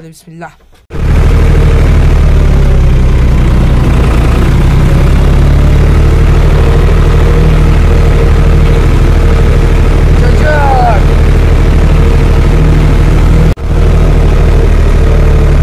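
A tractor engine chugs loudly and steadily up close.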